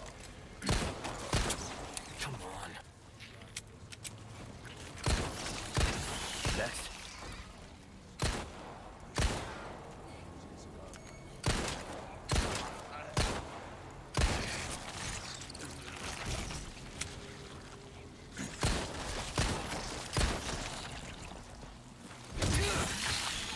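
Pistol shots ring out sharply, one after another, with echoes.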